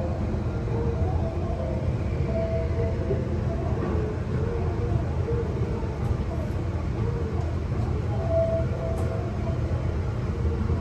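Construction machinery rumbles and whines steadily nearby.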